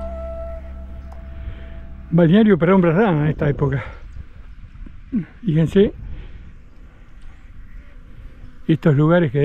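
Small waves lap gently at a sandy shore.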